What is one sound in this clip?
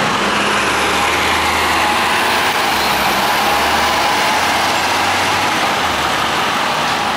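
A bus engine rumbles as the bus pulls away.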